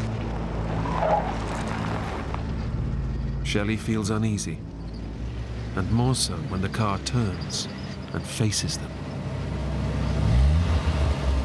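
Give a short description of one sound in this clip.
A truck engine rumbles on a dirt road.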